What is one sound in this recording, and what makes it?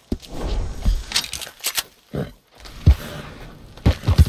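A horse's hooves thud on soft ground.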